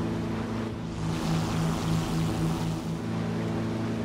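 Wind rushes past an aircraft.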